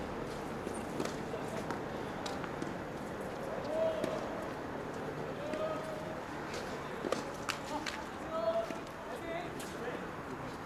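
Tennis balls are struck by rackets with sharp pops, heard from a distance outdoors.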